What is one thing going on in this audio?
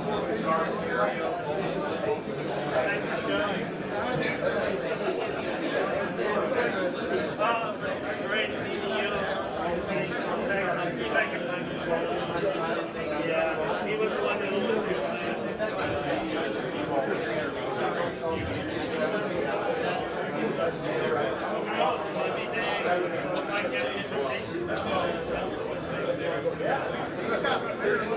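A crowd of people chatter nearby in a busy room.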